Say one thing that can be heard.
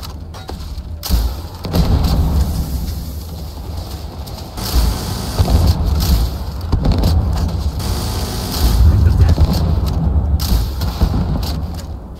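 Explosions rumble in the distance.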